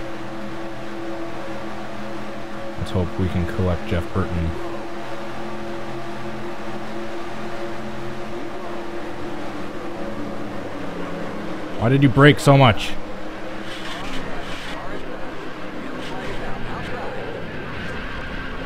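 Race car engines drone steadily at high speed.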